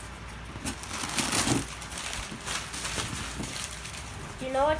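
Paper and foil crinkle as they are pulled out.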